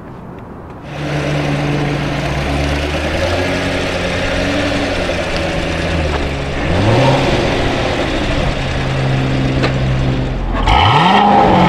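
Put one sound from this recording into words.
A V8 sports car engine rumbles as the car drives slowly past.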